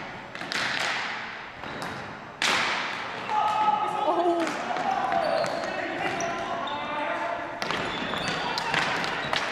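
Sticks clack against a ball and the floor, echoing in a large hall.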